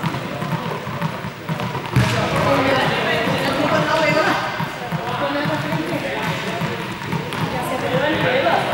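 Footsteps patter across a hard court floor.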